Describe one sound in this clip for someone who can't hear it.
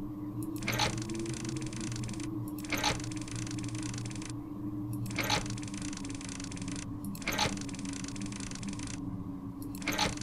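A clockwork machine clanks at a regular, slow beat.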